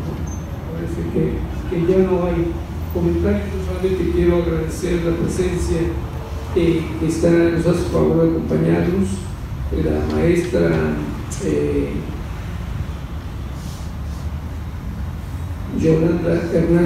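An elderly man speaks calmly into a microphone, heard through a loudspeaker in an echoing hall.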